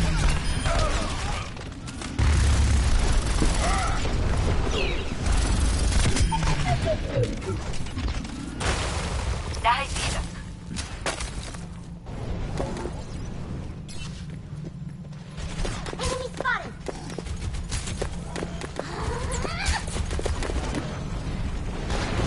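Guns fire rapidly in bursts with loud blasts.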